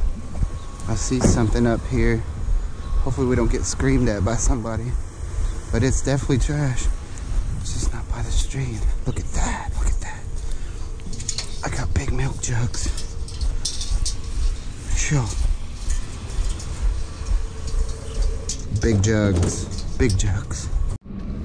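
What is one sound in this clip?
A man talks casually, close to the microphone.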